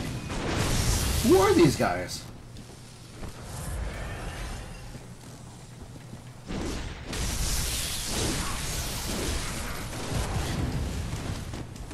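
Electric bolts crackle and buzz.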